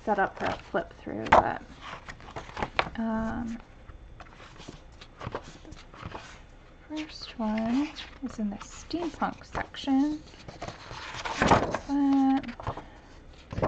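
Pages of a book rustle as they are turned.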